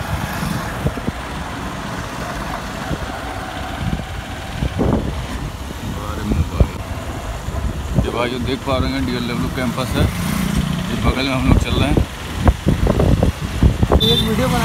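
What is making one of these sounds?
A small vehicle engine rumbles steadily close by, outdoors.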